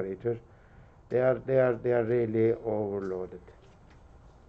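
A man speaks calmly through a microphone, as if lecturing.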